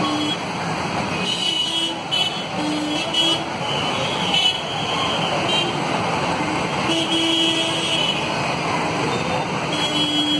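Motorbikes and cars drive past on a busy street with a steady rumble of engines.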